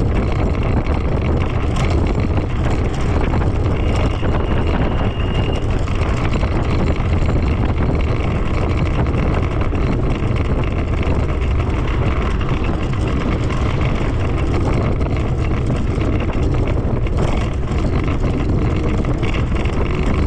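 Wind roars loudly and steadily.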